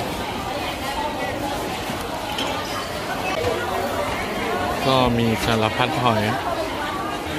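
Many people chatter in a busy, echoing indoor market.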